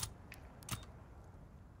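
Short electronic menu clicks sound.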